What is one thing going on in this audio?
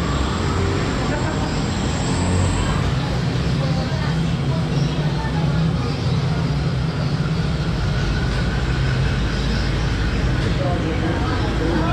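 A metal ladle stirs and scrapes inside a pot.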